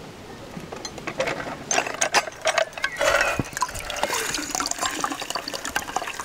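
A juicer presses oranges with a metallic squeak.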